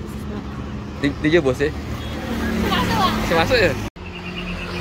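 Young girls chatter and laugh close by.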